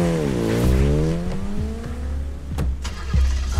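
A motorcycle engine whines as it speeds past.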